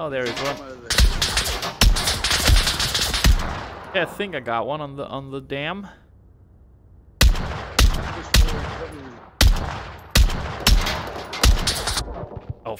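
A rifle fires single shots in quick succession, each ringing out with a short echo.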